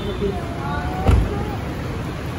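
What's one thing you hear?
A car door shuts with a heavy thud.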